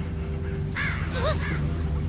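Footsteps crunch through leaves and undergrowth.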